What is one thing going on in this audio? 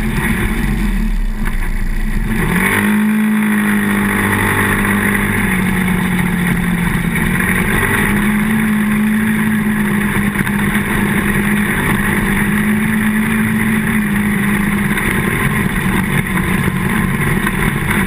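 An all-terrain vehicle engine drones at speed.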